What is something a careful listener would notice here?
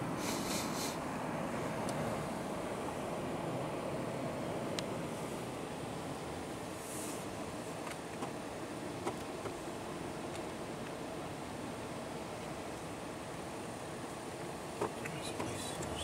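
Rough waves churn and crash against rocks.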